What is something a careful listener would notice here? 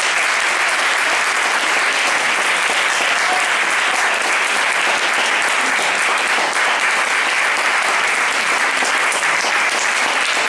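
An audience applauds steadily in a room.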